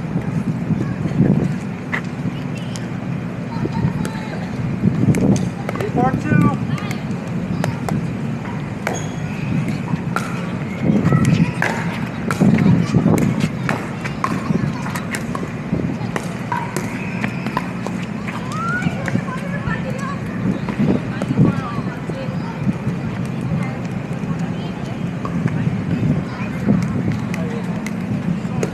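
Paddles knock a plastic ball back and forth in sharp pops.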